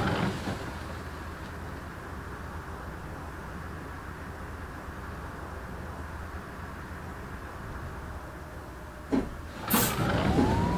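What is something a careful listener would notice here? A bus engine idles with a low hum.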